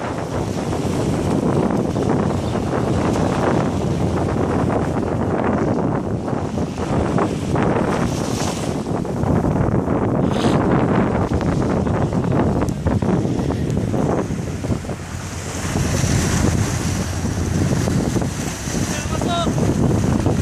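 Small waves wash and break on a sandy shore.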